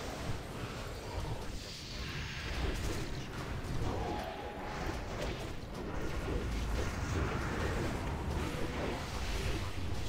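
Magic spells crackle and whoosh in a busy battle.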